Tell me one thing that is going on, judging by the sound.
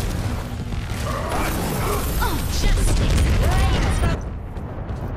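Explosions and gunfire roar loudly in a game battle.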